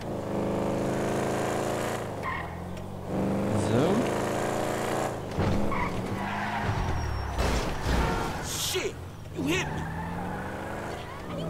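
A car engine revs loudly and changes pitch as the car speeds along.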